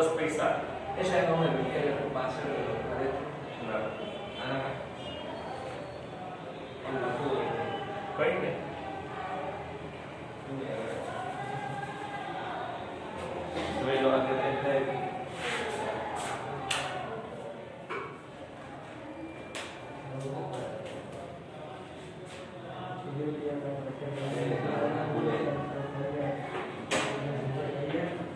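A man lectures in a loud, steady voice nearby.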